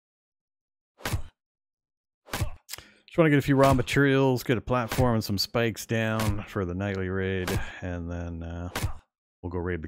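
An axe chops into a tree trunk with sharp, woody thuds.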